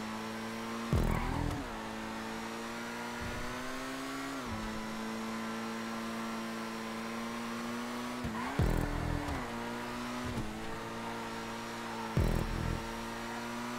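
A car thumps and bumps over the track.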